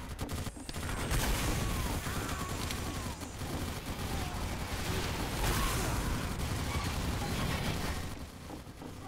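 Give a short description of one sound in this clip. Gunfire crackles rapidly.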